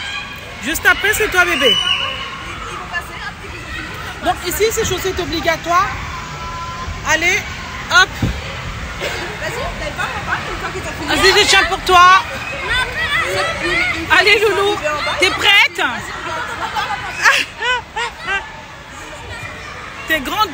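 Children shout and squeal in a large echoing hall.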